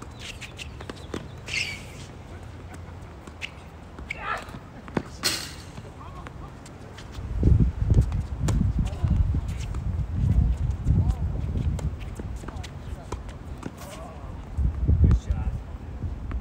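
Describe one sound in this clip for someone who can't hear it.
A tennis ball is struck sharply by rackets.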